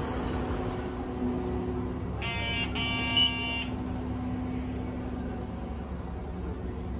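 A bus engine hums steadily.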